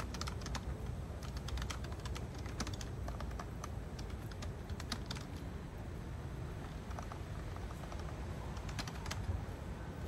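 Fingers tap quickly on a laptop keyboard outdoors.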